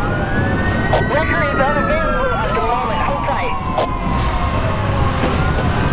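Police sirens wail and rise and fall in pitch.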